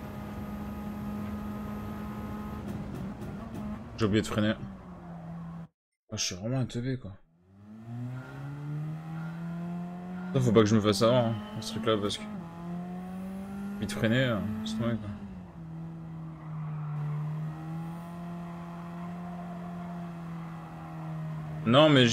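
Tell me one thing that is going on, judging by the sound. A racing car engine drones steadily, shifting in pitch as it changes gear.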